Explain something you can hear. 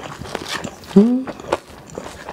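A young woman makes a short hum close to the microphone.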